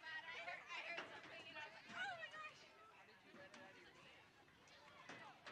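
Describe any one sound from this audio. Young women shout to each other from a distance outdoors.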